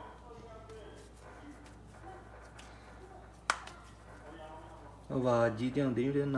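Hands softly pat dough between the palms.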